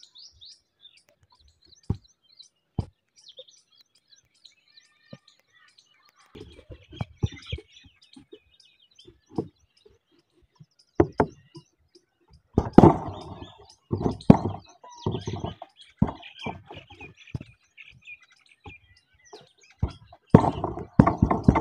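Birds chirp and twitter nearby outdoors.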